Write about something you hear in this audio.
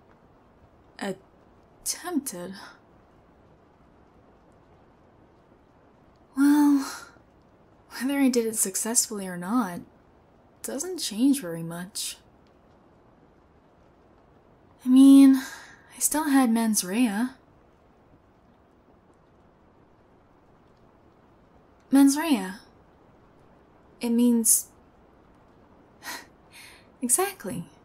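A young woman speaks softly and close to a microphone, in short phrases with pauses.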